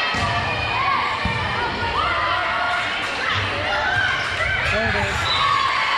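A volleyball is struck during a rally.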